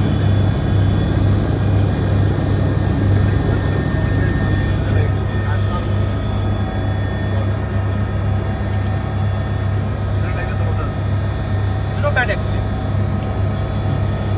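A helicopter engine and rotor drone loudly and steadily inside the cabin.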